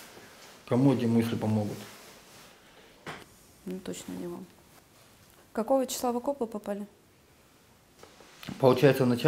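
A young woman speaks calmly and quietly into a nearby microphone, with pauses.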